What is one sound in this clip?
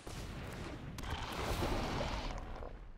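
A magical swirling whoosh rises and fades.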